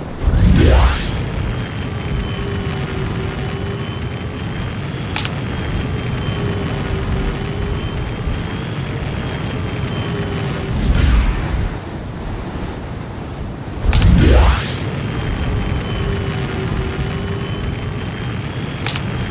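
A jetpack hums steadily in flight.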